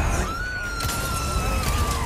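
A gunshot rings out.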